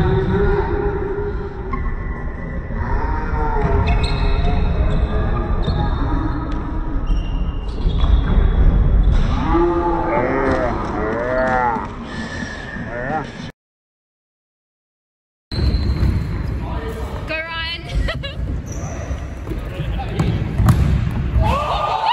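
Shoes squeak on a hard indoor court.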